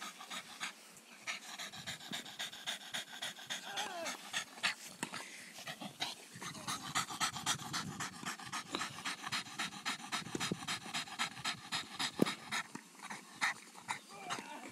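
A dog pants quickly and heavily close by.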